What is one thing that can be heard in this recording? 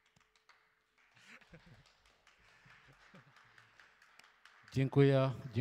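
A man laughs softly into a microphone.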